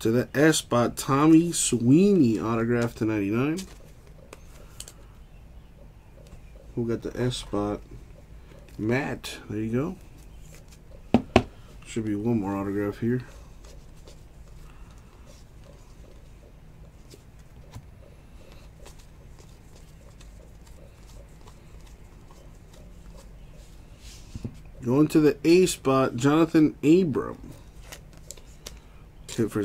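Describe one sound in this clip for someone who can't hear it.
Stiff trading cards rustle and click as hands shuffle them.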